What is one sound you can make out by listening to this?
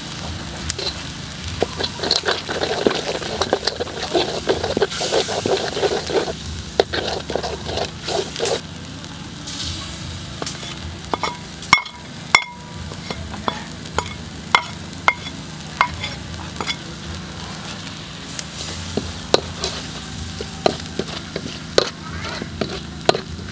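Hot oil sizzles and bubbles in a wok.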